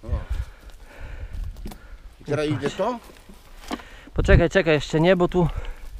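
A wooden box knocks down onto bricks.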